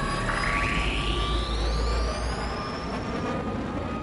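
A high whine rises sharply as a spaceship speeds up.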